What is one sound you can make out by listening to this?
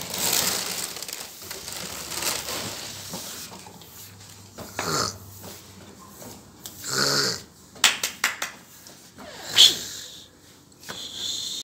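A toy ride-on car's plastic wheels roll and rattle across a hard floor.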